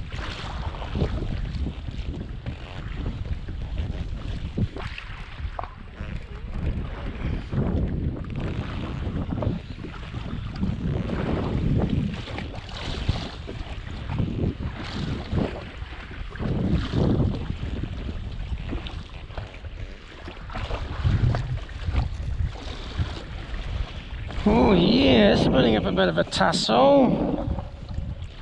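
A fishing reel clicks as its handle is wound.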